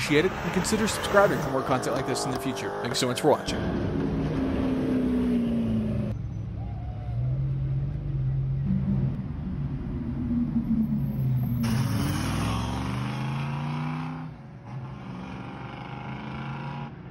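A sports car engine roars and revs.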